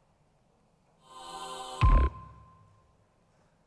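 A small electronic synthesizer plays a short buzzing chord that ends in a deep thump.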